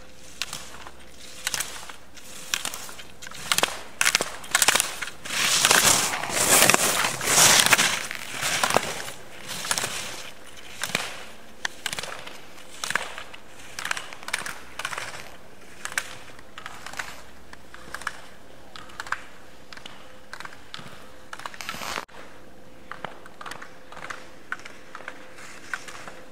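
Skis scrape and hiss across hard snow in quick turns.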